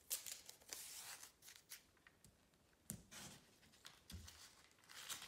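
Hands rub and press tape against paper with a crinkling rustle.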